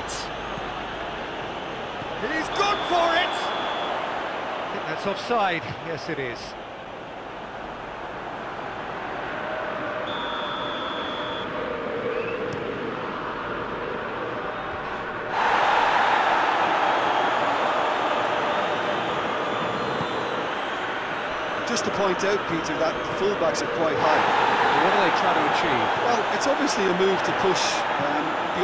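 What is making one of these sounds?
A large crowd cheers and murmurs steadily in a big open stadium.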